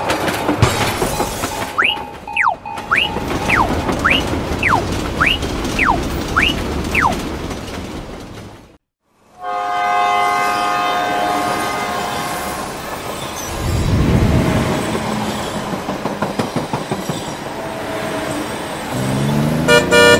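A diesel locomotive rumbles along the tracks.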